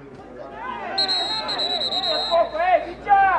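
A referee's whistle blows one long, shrill blast.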